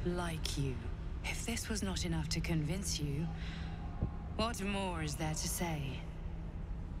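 A woman speaks with a slow, menacing tone, heard close.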